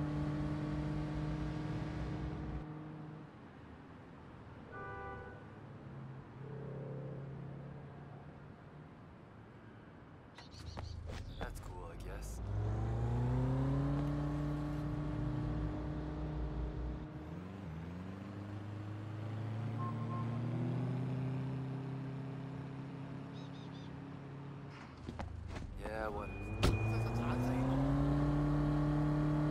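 A car engine revs up and down, rising in pitch as it speeds up.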